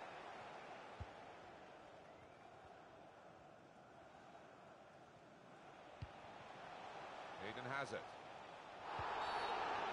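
A football is kicked with short thuds.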